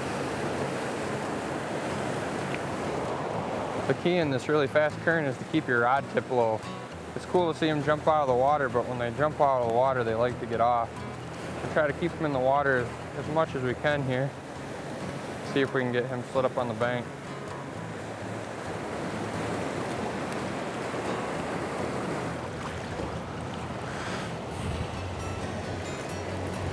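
A river rushes steadily outdoors.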